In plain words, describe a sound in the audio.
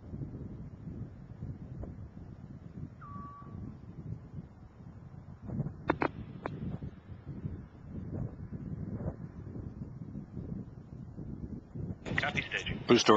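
A rocket engine roars with a low, muffled rumble.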